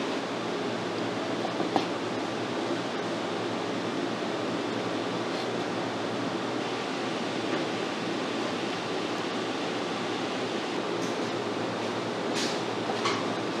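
A knife chops through meat onto a cutting board.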